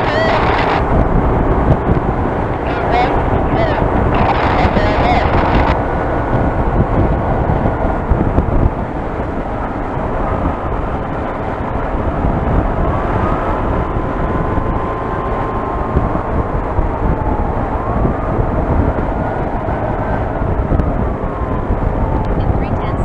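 A motorcycle engine drones steadily at highway speed.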